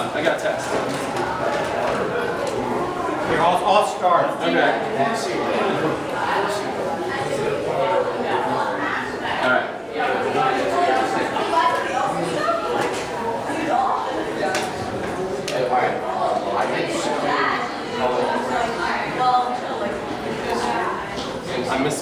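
Several people talk at once nearby.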